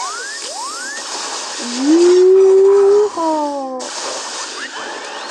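Laser blasters fire with quick rising zaps.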